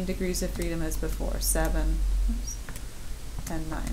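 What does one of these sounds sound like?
Calculator keys click softly as they are pressed.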